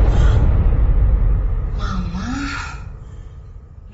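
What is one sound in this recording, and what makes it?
A young woman gasps in fright close by.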